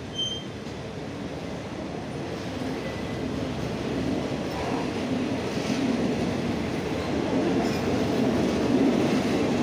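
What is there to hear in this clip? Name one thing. A passenger train rumbles past, its wheels clattering over the rails.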